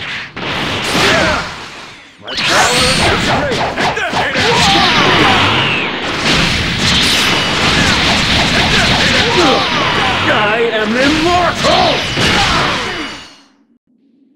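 Punches and kicks land with heavy thuds in quick flurries.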